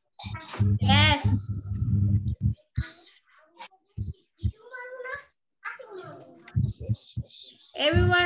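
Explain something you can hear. A child speaks through an online call.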